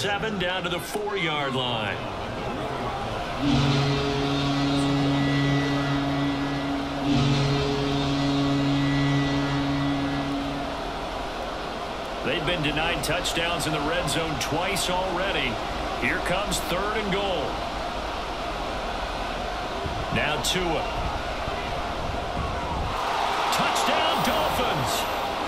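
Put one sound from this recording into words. A stadium crowd murmurs and cheers loudly.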